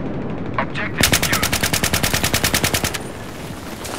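A rifle fires in a rapid burst.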